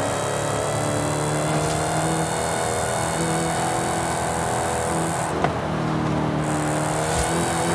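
A powerful car engine roars steadily at high speed.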